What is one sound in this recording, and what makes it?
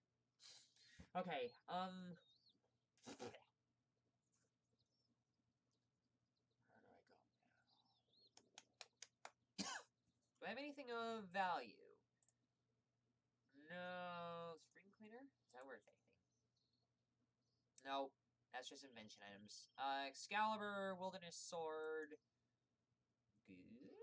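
A young woman talks casually into a close microphone, in short bursts.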